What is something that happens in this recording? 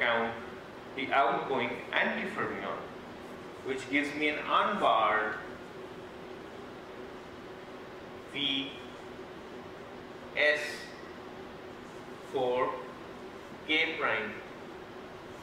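A man lectures calmly in short bursts.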